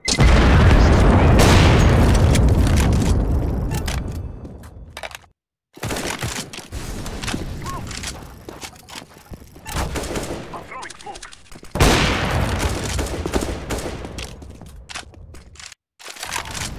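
A rifle fires a loud, booming shot that echoes and slowly fades.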